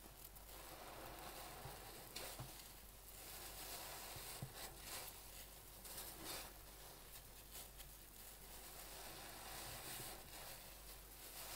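Soap suds fizz and crackle softly.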